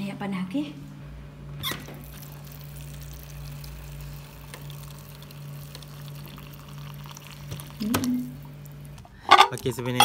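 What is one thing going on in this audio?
Hot water pours steadily from a dispenser into a cup.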